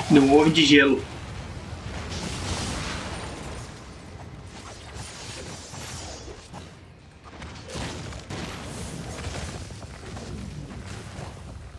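Energy blasts crackle and boom repeatedly.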